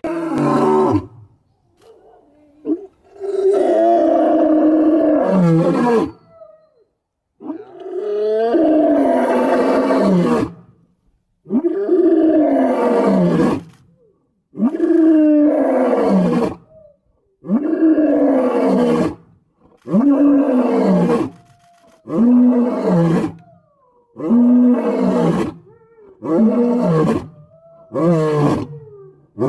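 A lion roars deeply and repeatedly close by, in a series of long calls that get shorter.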